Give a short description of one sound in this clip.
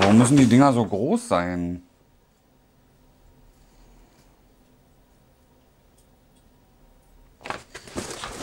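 A man speaks close by, with animation.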